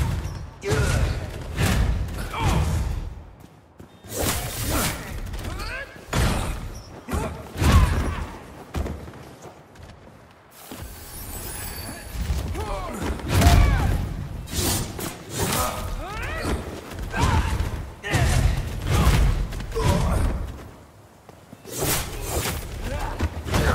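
Blades clash and strike repeatedly in a fight.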